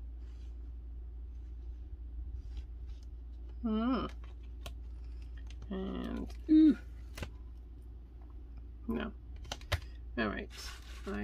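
Hands handle and shift pieces of paper with soft rustles.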